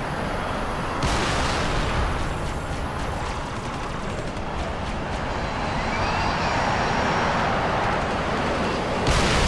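A dropship's engines roar as it lifts off and flies away.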